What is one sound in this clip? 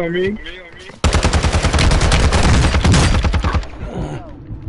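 A rifle fires in a rapid, loud burst.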